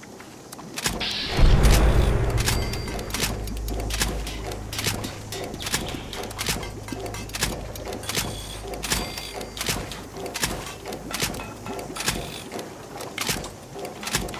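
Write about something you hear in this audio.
Short clicks tick again and again at a steady pace.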